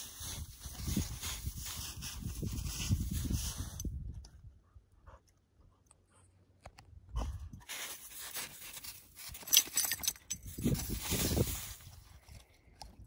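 A dog rolls and wriggles in crunching snow.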